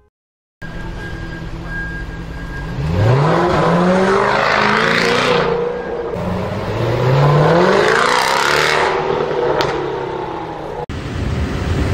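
A powerful car engine roars and revs as it drives past close by.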